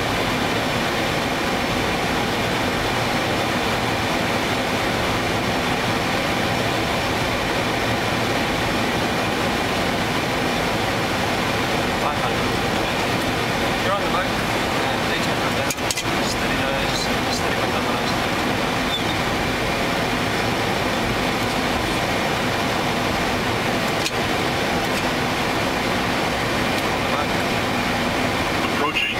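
Jet engines drone steadily.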